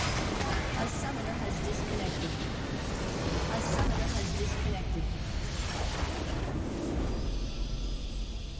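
Magical blasts crackle and roar in a video game battle.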